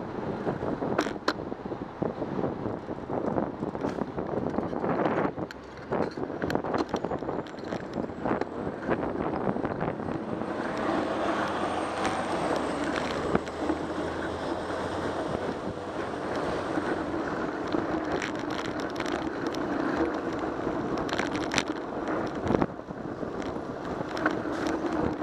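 A bicycle rattles and clicks over a bumpy city street.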